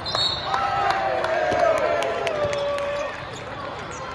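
Players shout and cheer after a point in a large echoing hall.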